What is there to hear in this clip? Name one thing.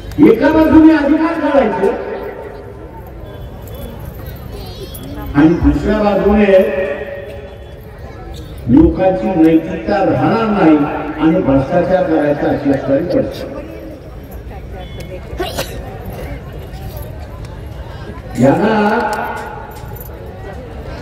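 A man speaks forcefully through a microphone and loudspeakers outdoors, in bursts with pauses.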